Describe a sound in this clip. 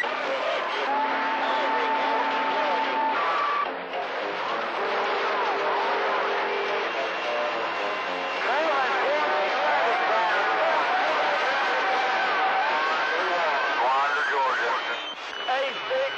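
Steady whistling tones and warbling signals come and go through a radio receiver's static.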